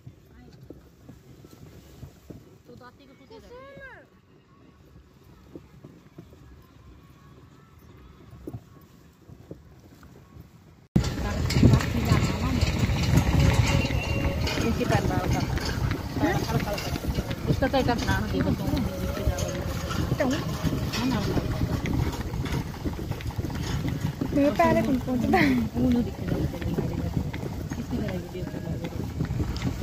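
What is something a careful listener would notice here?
Cart wheels rumble and rattle over a rough road.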